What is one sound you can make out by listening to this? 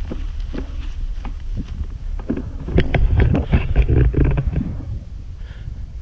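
Inline skate wheels roll and rumble over grass.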